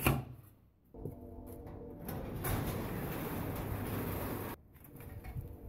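A garage door rattles and rumbles as it rolls open.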